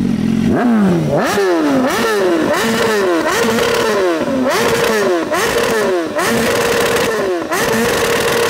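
A motorcycle engine revs up hard again and again, hitting the rev limiter.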